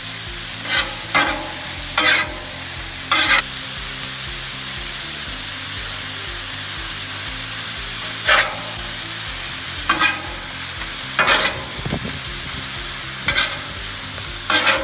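Metal spatulas scrape and clack against the griddle.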